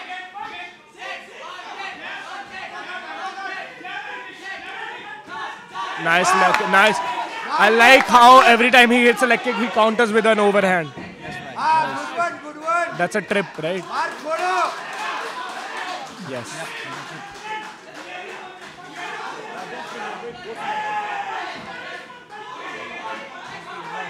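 A crowd cheers and shouts around a fighting cage.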